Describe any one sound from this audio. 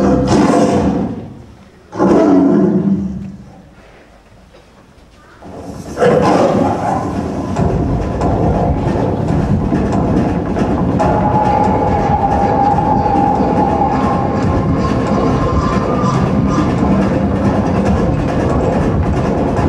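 Feet stamp and shuffle on a wooden stage.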